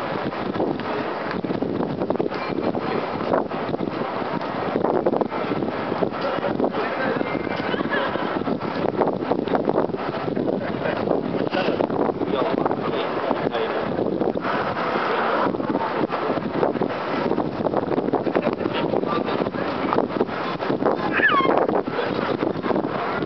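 A crowd murmurs and chatters all around, outdoors.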